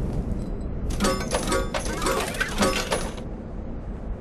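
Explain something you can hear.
Coins jingle as they are collected.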